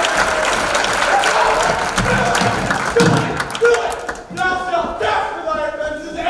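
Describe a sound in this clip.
Young actors sing loudly in a large hall.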